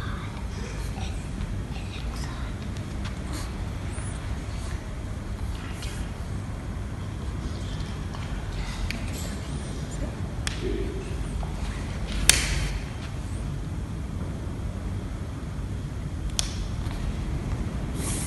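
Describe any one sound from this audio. A young girl speaks softly into a microphone, reading out.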